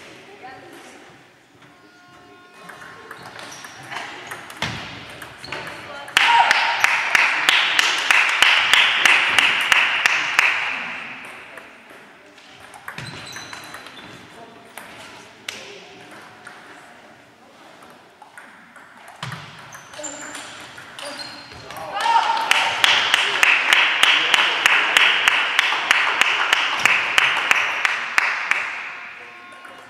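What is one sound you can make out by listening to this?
A table tennis ball clicks against paddles and bounces on a table.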